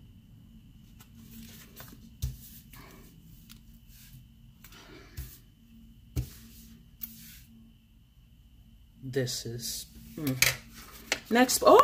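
Paper sheets rustle and tap against a table.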